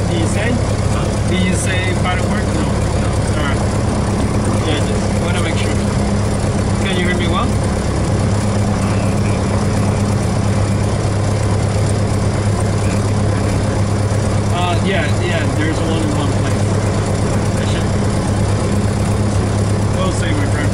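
A small plane's propeller engine idles with a steady drone.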